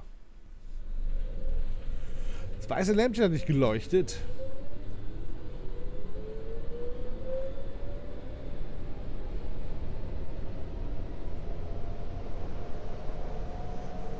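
A train rumbles along the rails.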